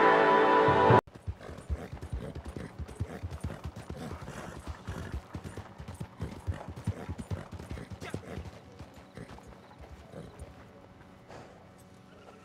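Horse hooves pound steadily on a dirt track at a gallop.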